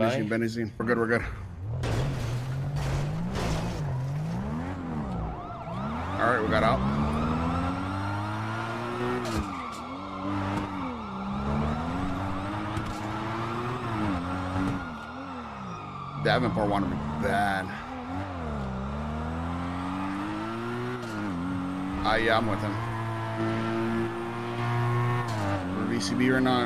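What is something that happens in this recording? A car engine revs hard, rising and falling in pitch as the car speeds through gear changes.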